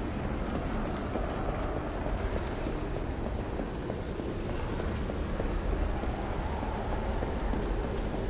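Heavy armored footsteps clank on a stone floor.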